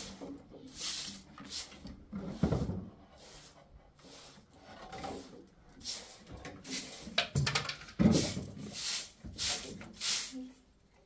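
A broom sweeps in short, brisk swishes across a rug.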